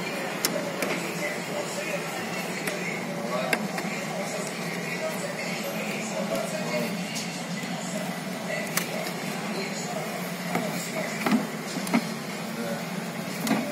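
Plastic parts click and rattle as a hand handles them.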